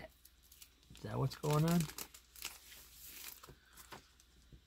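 A plastic sleeve crinkles as a comic is slid out.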